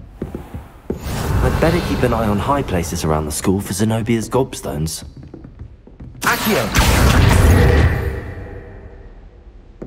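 A magical shimmering burst rings out loudly and fades.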